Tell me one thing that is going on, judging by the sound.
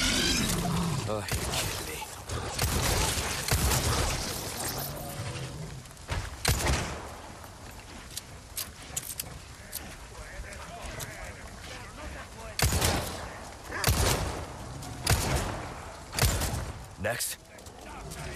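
Gunshots fire sharply, one after another.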